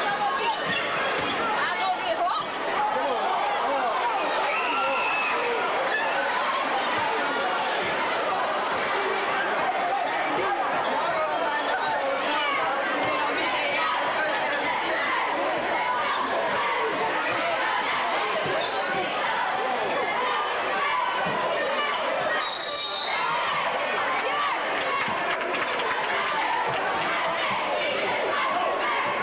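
A large crowd cheers and chatters loudly in an echoing gym.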